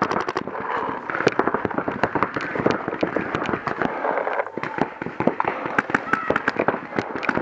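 A paintball marker fires in rapid bursts close by.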